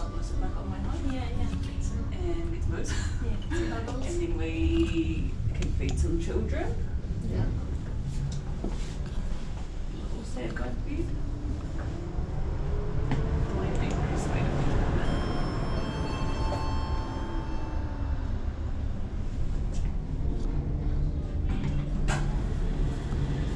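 A lift hums and rumbles steadily as it moves.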